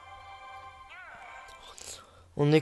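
A short electronic game jingle plays.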